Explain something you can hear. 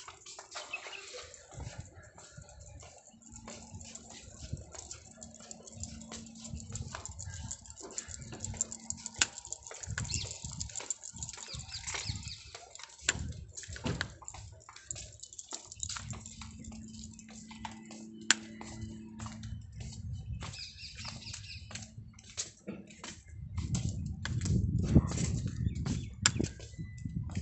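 Dog paws patter on paving.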